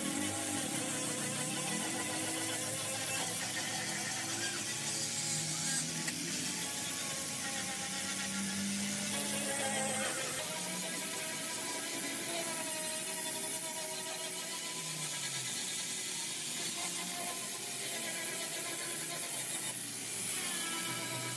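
An angle grinder whines steadily as it sands metal.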